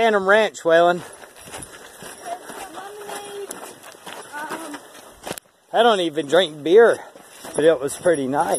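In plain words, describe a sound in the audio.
Footsteps crunch on a gravel trail.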